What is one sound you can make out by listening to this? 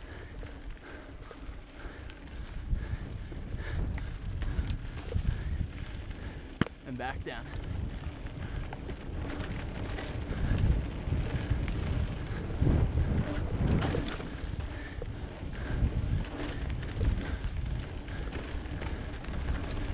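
Tyres rumble and crunch over a bumpy dirt trail.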